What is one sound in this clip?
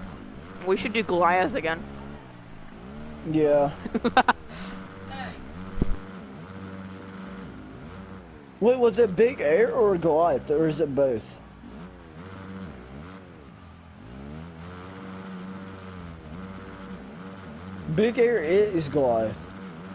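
A motorbike engine revs and whines, rising and falling in pitch.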